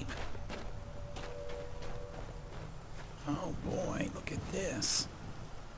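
Footsteps crunch on grass and stone.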